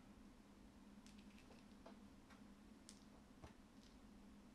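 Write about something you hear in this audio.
Small game pieces click softly on a tabletop.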